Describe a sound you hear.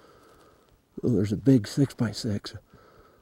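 Elk call out across an open field.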